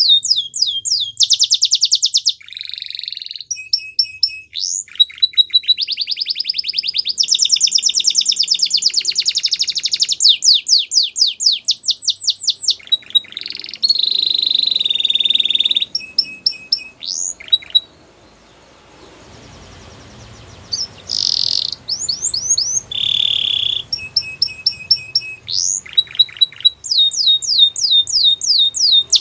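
A canary sings loudly and close by, with fast trills, rolls and whistled chirps.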